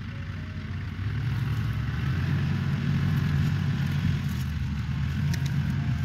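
A diesel farm tractor pulls away, its engine rising.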